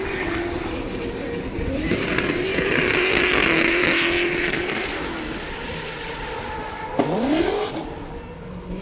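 Tyres squeal loudly on pavement.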